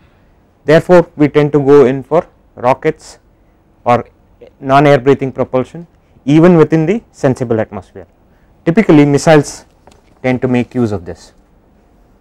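A man speaks calmly and clearly into a clip-on microphone.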